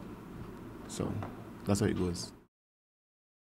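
A man speaks calmly into a microphone close by.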